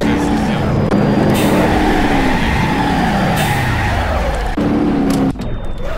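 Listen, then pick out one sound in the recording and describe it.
Tyres screech while a car skids.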